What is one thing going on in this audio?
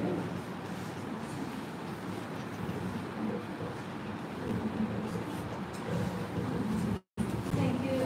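An elderly woman speaks into a microphone.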